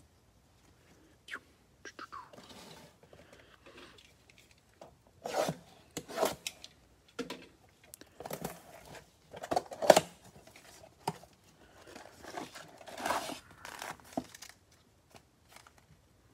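Cardboard boxes rustle and tap as gloved hands handle them.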